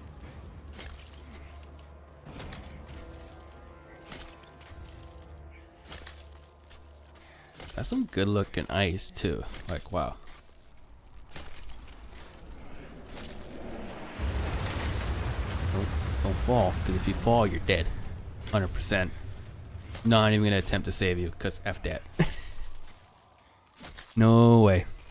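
Ice axes strike and chip into ice.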